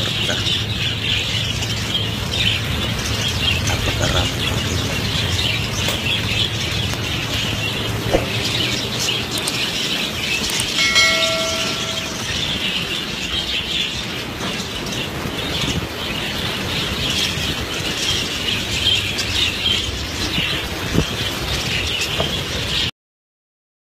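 Many budgerigars chirp and chatter busily all around.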